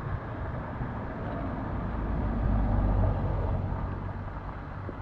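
A small SUV drives past on the road.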